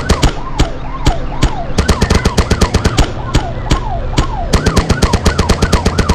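A police siren wails up and down.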